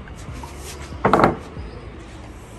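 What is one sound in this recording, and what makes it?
A plastic bottle crinkles in a woman's hands.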